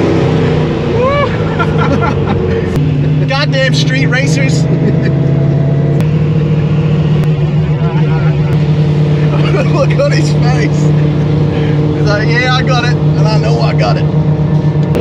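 A man talks and laughs nearby inside the car.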